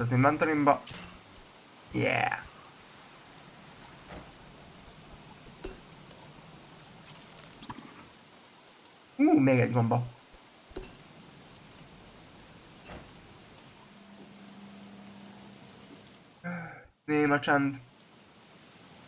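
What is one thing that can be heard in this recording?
A man talks casually into a microphone in short bursts.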